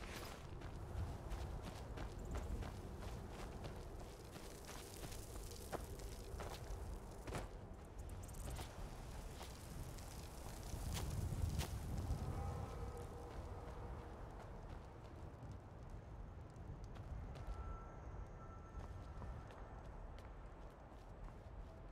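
Wind rumbles low outdoors.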